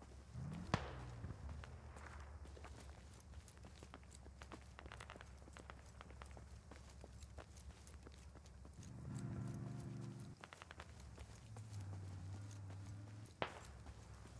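Footsteps rustle through grass and undergrowth.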